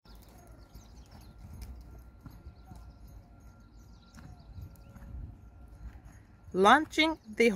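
A horse's hooves thud softly on sand as it trots.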